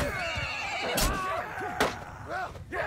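Metal weapons clash sharply.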